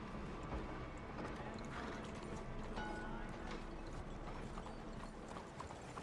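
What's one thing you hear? Horse hooves clop on a dirt street.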